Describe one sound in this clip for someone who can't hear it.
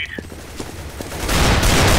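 Rifle fire bursts out in a video game.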